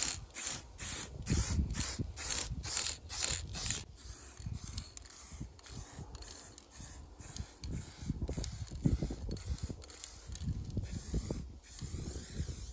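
A spray can hisses in short, quick bursts.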